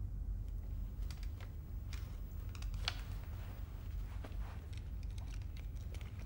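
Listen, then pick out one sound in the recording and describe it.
A man shifts and rustles his clothing.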